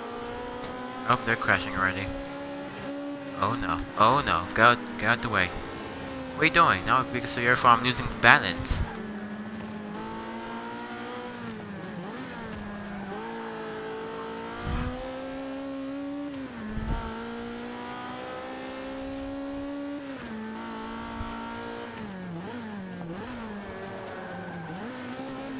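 A racing car engine revs high, rising and dropping as the gears shift.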